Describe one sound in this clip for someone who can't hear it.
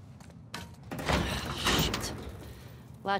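A metal gate rattles and clanks as it is pulled.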